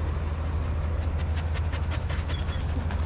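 A dog pants loudly close by.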